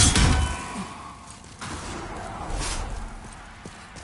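A sword clashes against an enemy's armour.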